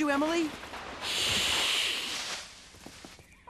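A cat hisses loudly.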